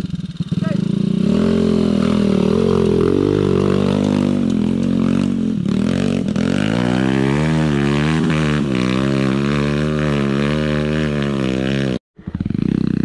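A motorbike engine whines steadily as it climbs a hill.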